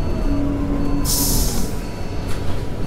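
Air brakes hiss briefly.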